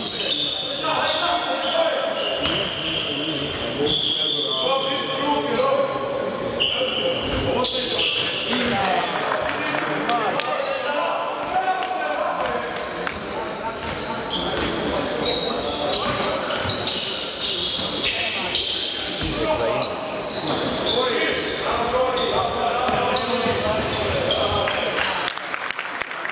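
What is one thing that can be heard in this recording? Sneakers squeak sharply on a court in a large echoing hall.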